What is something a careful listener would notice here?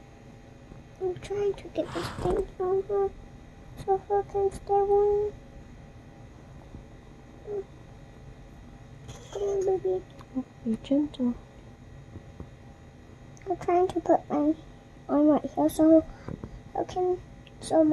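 A young child talks softly nearby.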